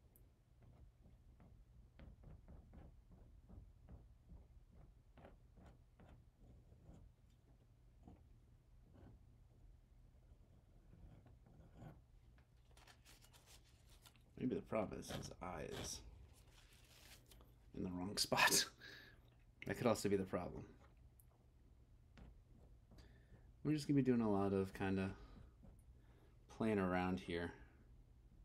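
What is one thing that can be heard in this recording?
A palette knife scrapes softly across a canvas.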